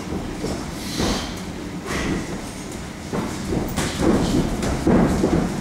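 Boxing gloves thump against punch mitts in an echoing hall.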